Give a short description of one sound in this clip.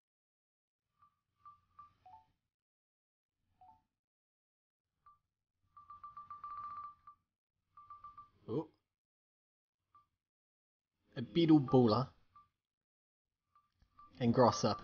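Short electronic menu beeps chirp now and then.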